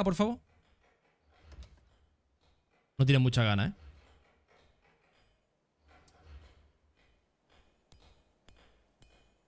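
A man speaks calmly and softly, close to a microphone.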